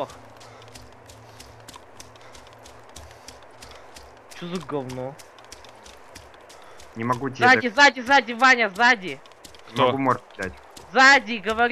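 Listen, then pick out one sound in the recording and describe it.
Footsteps swish steadily through grass.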